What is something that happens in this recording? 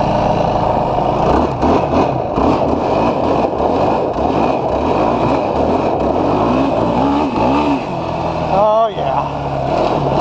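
Tyres crunch and skid on loose gravel.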